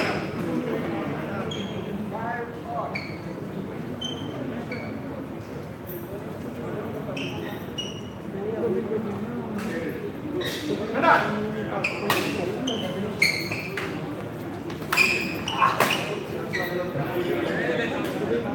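Rackets hit a shuttlecock back and forth with sharp pops.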